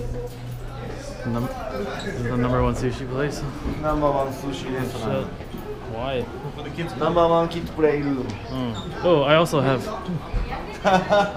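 Young men talk and laugh nearby.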